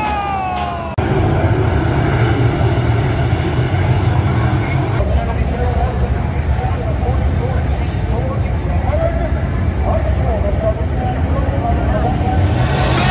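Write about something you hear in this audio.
A race car engine rumbles loudly at a steady idle nearby.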